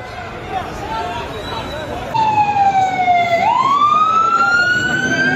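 A large crowd of men murmurs and calls out outdoors.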